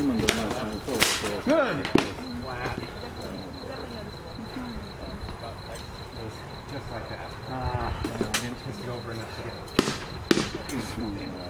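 Sharp metal blows clang against armour.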